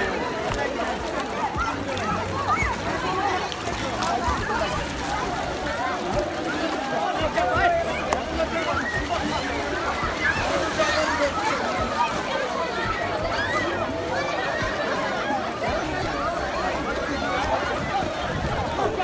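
Water splashes as swimmers kick and play.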